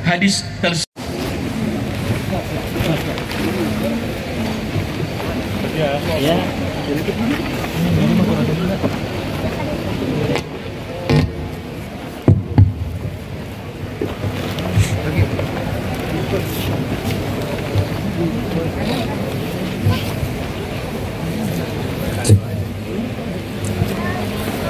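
A large crowd murmurs and chats outdoors.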